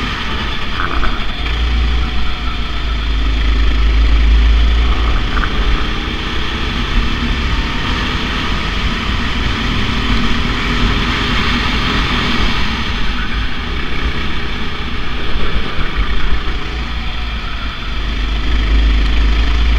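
A kart engine buzzes loudly, rising and falling in pitch as it speeds up and slows for corners.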